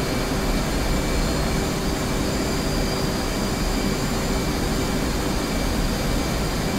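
A jet engine roars steadily from inside a cockpit.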